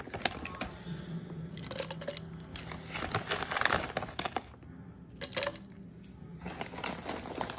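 A small blender motor whirs steadily.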